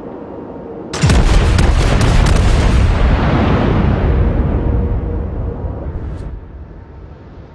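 Battleship main guns fire a salvo with a deep, rolling boom that slowly fades.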